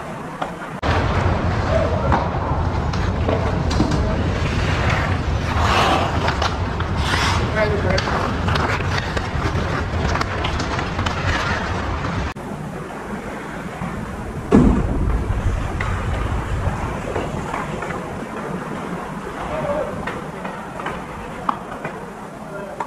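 Ice skates scrape and carve on ice in a large echoing hall.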